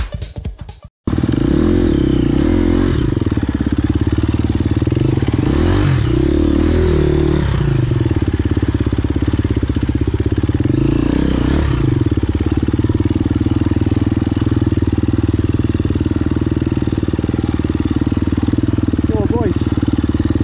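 A dirt bike engine revs and chugs steadily up close, rising and falling in pitch.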